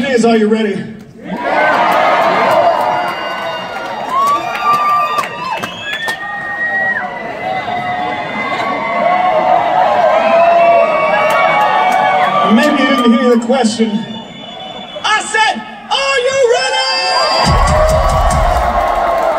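A singer's voice rings out through loudspeakers in a large echoing hall.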